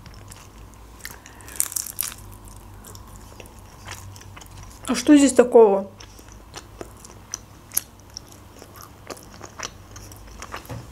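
A young woman chews and bites food with wet, crunchy mouth sounds.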